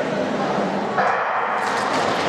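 Skate blades scrape across ice as skaters push off.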